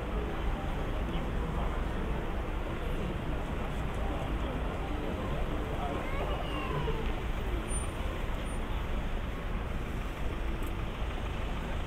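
Cars drive past on the street.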